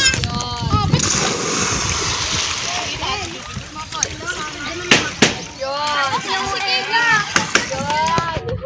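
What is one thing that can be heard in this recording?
Water splashes as swimmers move through it.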